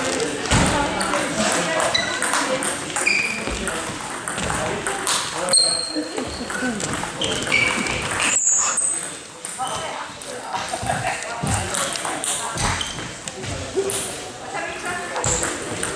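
A small ball clicks back and forth between paddles and a table in an echoing hall.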